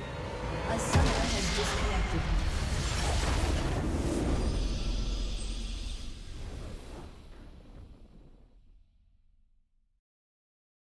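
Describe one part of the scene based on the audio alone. A triumphant game fanfare swells up and then slowly fades away.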